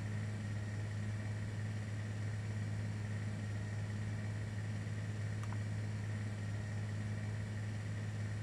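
Propeller engines drone steadily.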